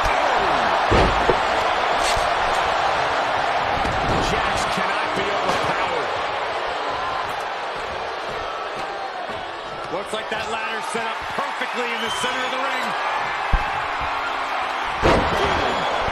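A body slams down onto a wrestling mat with a heavy thud.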